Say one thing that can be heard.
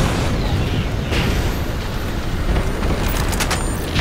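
A weapon clicks and rattles as it is picked up.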